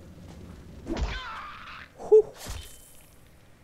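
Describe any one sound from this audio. A sword slashes with a sharp swish and a thud.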